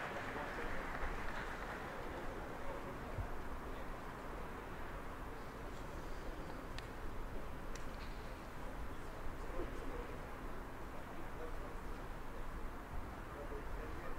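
Players call out to each other across an open outdoor field.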